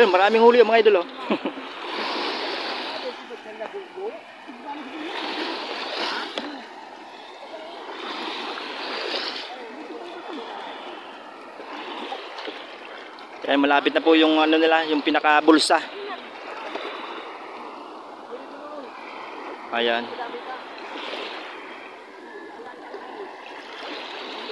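Small waves wash onto the shore in repeated surges.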